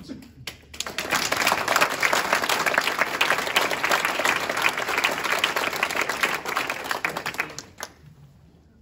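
A crowd applauds loudly in a large room.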